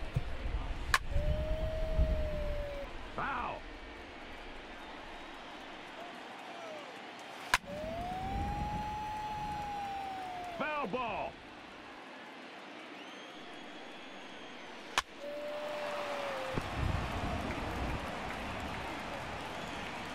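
A stadium crowd cheers.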